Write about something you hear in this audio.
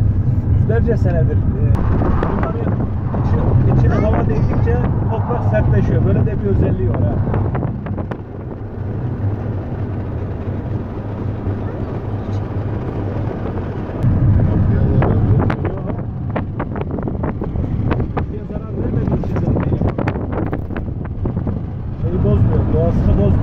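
A car's cabin rumbles as it drives along an asphalt road.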